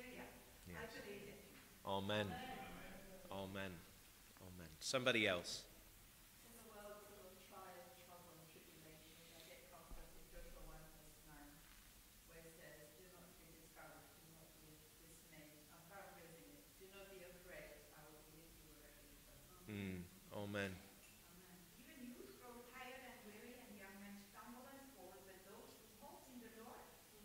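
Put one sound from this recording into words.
A man speaks steadily through a microphone and loudspeakers in a large echoing hall.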